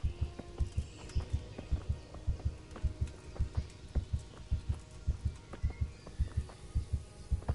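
Footsteps thud quickly and steadily on hard dirt as someone runs.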